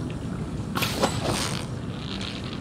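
Water splashes as a fish bites a fishing line.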